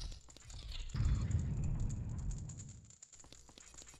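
A heavy stone door rumbles as it slides.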